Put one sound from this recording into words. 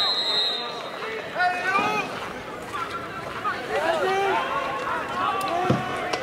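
Young women shout and call out to each other across an open outdoor field.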